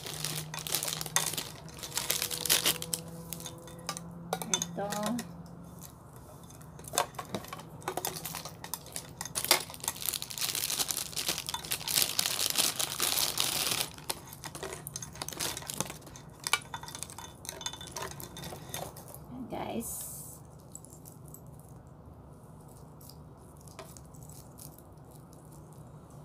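Metal watch bands clink and rattle in a woman's hands.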